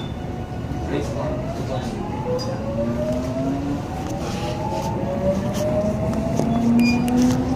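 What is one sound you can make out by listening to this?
A train's motor whines, rising slowly in pitch as it speeds up.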